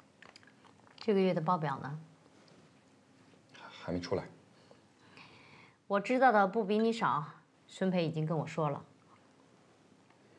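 A woman talks quietly.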